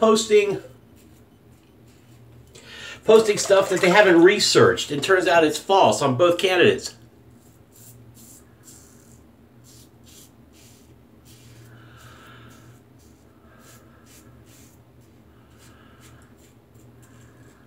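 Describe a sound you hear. A razor scrapes across stubble.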